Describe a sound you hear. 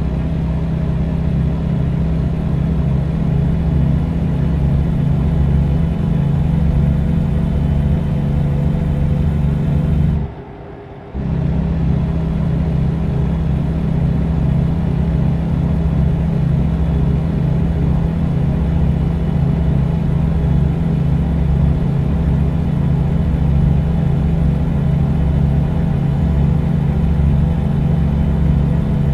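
A truck engine drones steadily inside the cab, cutting out briefly for a moment.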